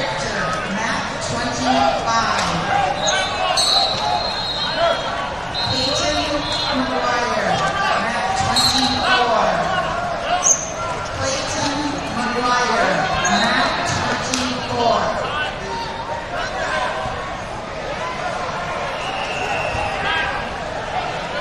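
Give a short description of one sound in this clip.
A large crowd chatters in a big echoing hall.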